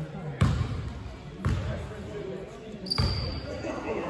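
A basketball bounces on a wooden floor in an echoing hall.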